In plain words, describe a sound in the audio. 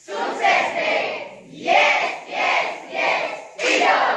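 A group of teenagers claps hands in rhythm.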